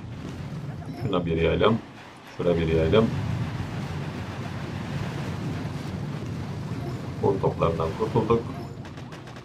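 A man speaks with animation into a nearby microphone.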